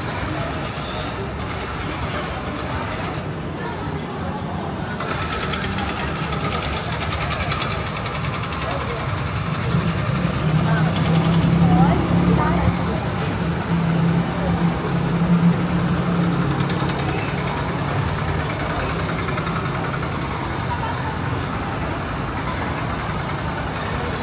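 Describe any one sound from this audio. A busy crowd murmurs in an echoing walkway.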